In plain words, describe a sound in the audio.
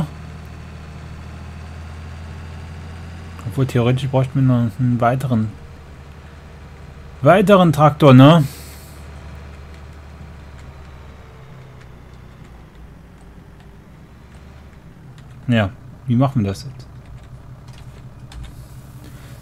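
A tractor engine drones steadily, then slows to a low idle.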